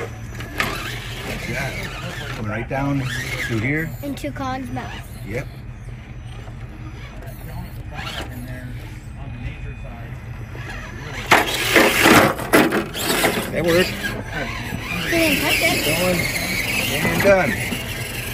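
Plastic tyres scrape and crunch over rough stone.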